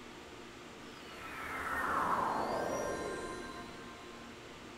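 A magical whooshing sound sweeps down in pitch.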